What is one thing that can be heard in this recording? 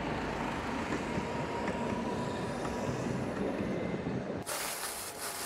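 A car drives past.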